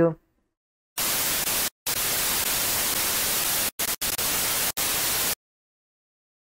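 Loud television static hisses.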